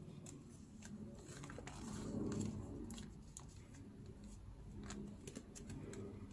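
Paper rustles and crinkles softly.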